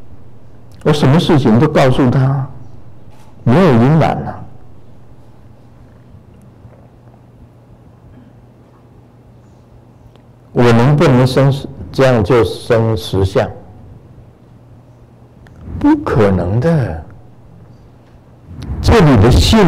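A middle-aged man speaks calmly into a microphone in bursts, with pauses between phrases.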